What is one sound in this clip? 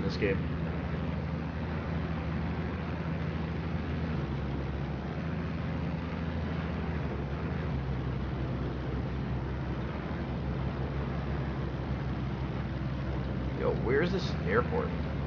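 A light plane's propeller engine drones steadily.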